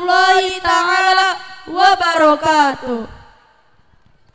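Two young women sing together through loudspeakers in a large echoing hall.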